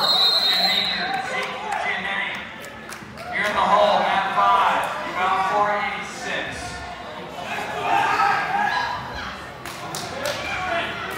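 A crowd of spectators talks and calls out in a large echoing hall.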